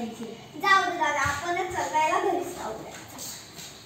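A young girl speaks loudly and with animation, close by.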